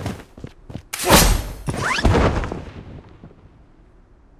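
A loud whoosh rushes past and fades away.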